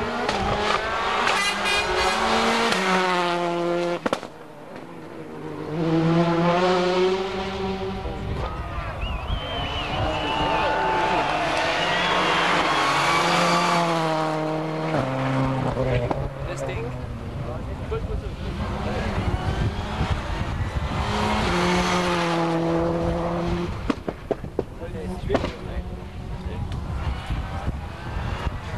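Rally car engines roar and rev hard, close by.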